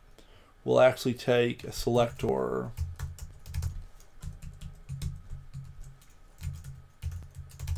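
Keys clatter on a keyboard as someone types.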